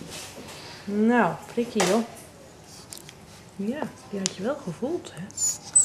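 A puppy whimpers softly.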